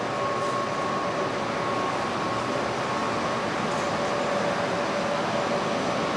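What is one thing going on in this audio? A metro train rumbles past on the far track of an underground station.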